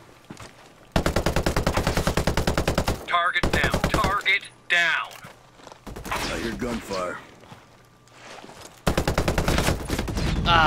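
Rapid gunfire bursts out loudly in short rattling volleys.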